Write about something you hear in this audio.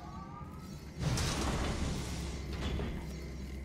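A heavy metal door hisses and rumbles open.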